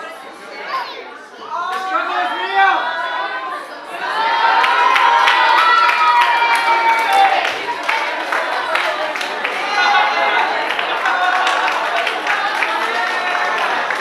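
A young woman laughs and talks excitedly close by.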